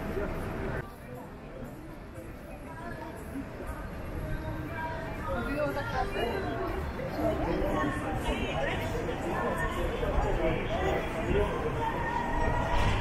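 Many voices chatter nearby outdoors.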